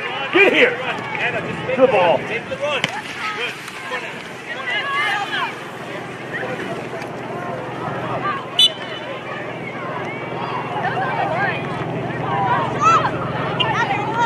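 Young women shout and call out to each other across an open field outdoors.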